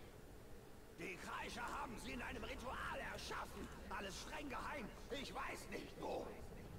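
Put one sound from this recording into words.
A gruff creature-like male voice speaks with agitation, close by.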